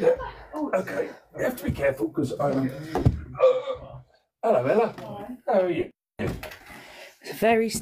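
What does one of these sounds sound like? Footsteps thud on carpeted wooden stairs.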